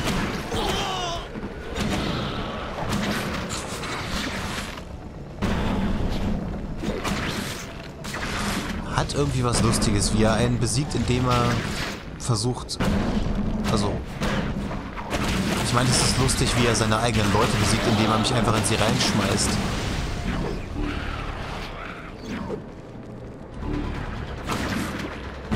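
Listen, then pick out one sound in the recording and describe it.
Punches and kicks thud in a video game fight.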